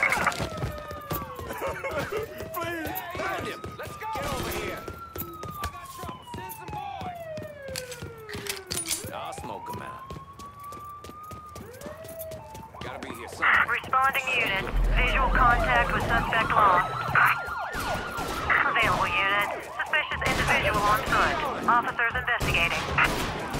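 Police sirens wail and rise and fall nearby.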